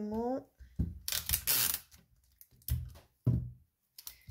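Tape is pulled off a roll and torn.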